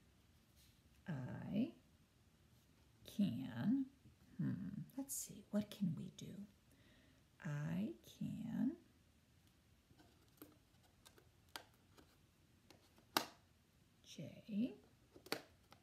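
A woman speaks calmly and slowly, close by.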